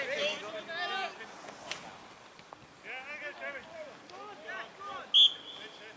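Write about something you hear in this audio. Young men shout to each other across an open field, far off.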